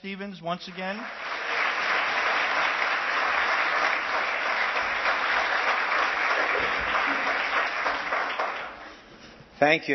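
An audience applauds loudly and then fades.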